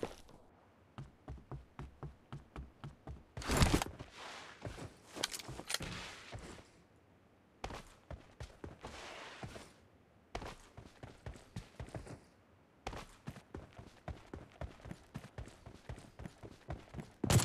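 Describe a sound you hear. Footsteps run on the ground at a steady pace.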